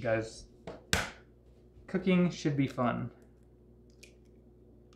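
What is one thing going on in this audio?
An egg cracks against a glass bowl.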